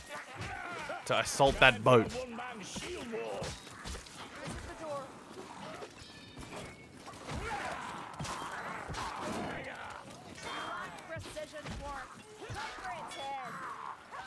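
Weapons strike and thud against creatures in a fight.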